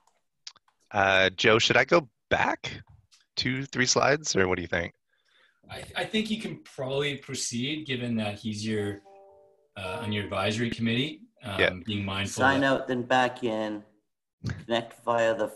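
A man speaks steadily over an online call.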